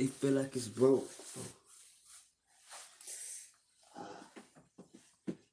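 Clothing rustles against the microphone.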